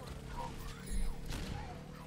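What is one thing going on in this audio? Explosions bang sharply.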